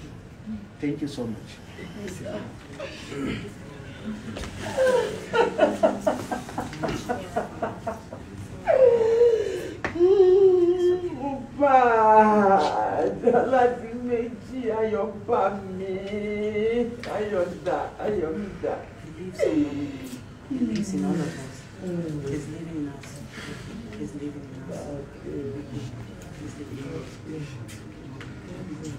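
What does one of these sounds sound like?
Several people talk quietly nearby.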